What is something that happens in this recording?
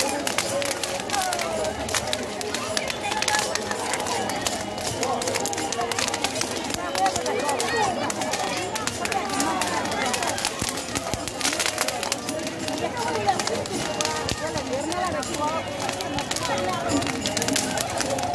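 Burning straw crackles close by.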